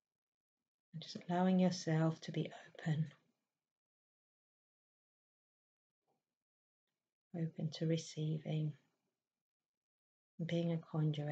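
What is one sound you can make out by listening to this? A middle-aged woman speaks slowly and calmly into a nearby microphone, with long pauses.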